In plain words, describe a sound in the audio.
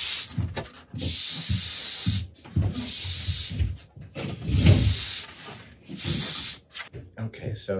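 An airbrush hisses in short spraying bursts.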